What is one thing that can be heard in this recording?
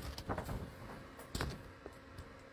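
A shrink-wrapped cardboard box is set down on a cloth mat.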